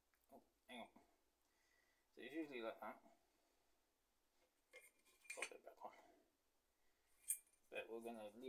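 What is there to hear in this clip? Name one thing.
Metal parts click and clink together.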